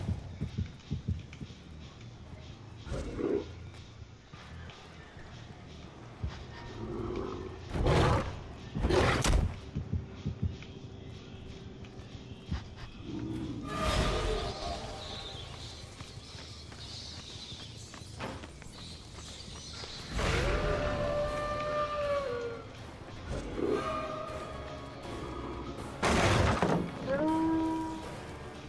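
Heavy footsteps thud on a hard floor.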